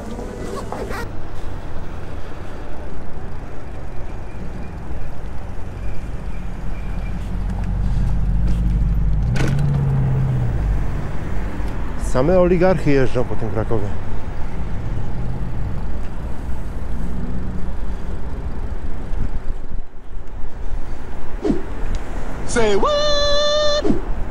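Bicycle tyres roll over pavement, with wind rushing past.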